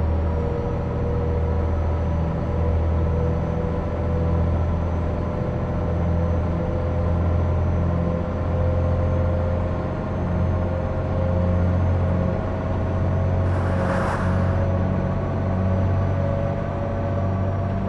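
Tyres roll on a road.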